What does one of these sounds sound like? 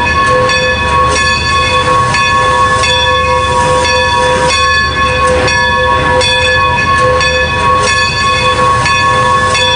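A steam locomotive chuffs slowly in a steady rhythm.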